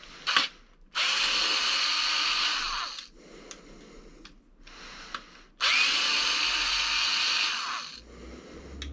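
A small electric screwdriver whirs steadily in short bursts.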